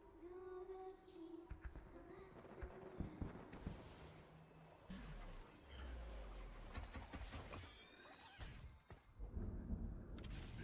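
Fantasy battle effects whoosh and clash.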